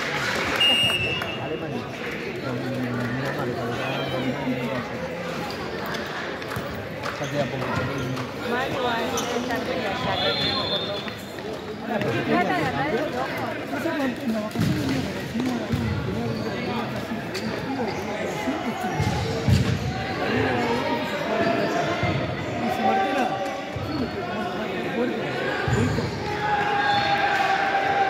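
Sneakers squeak on the floor.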